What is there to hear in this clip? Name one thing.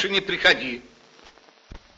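An elderly man speaks sternly, close by.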